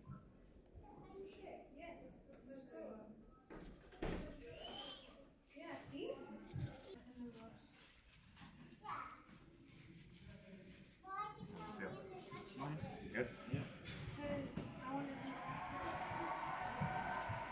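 A cloth wrap rustles as it is wound around a hand.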